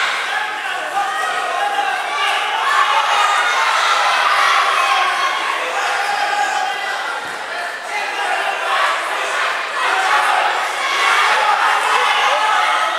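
A crowd of children and adults chatter and shout in a large echoing hall.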